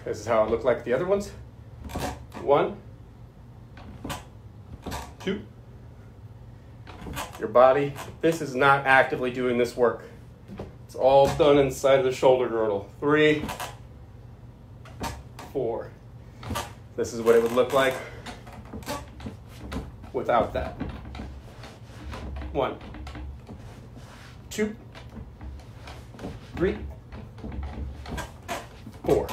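An office chair creaks under a man's weight.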